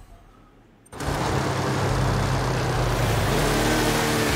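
A car engine roars steadily at high speed.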